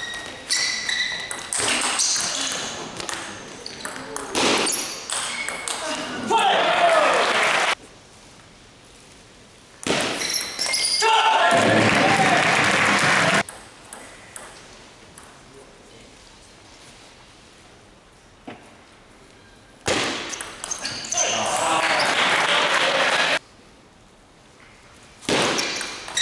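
A crowd applauds and cheers in a large echoing hall.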